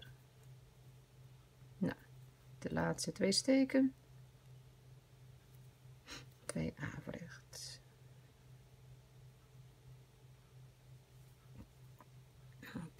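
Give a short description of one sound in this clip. A crochet hook softly rustles and ticks through yarn.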